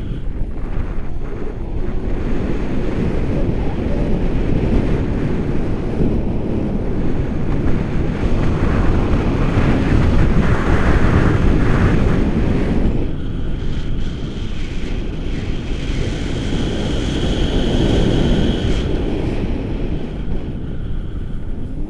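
A man talks loudly and with animation over the wind.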